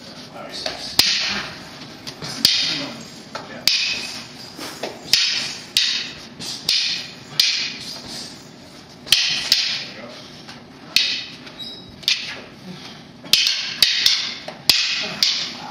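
Wooden sticks clack together sharply, echoing in a large room.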